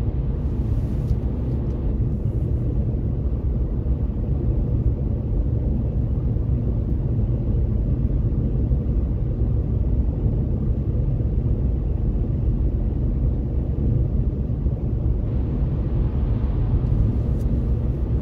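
A car cruises at highway speed, with a low road rumble heard from inside the car.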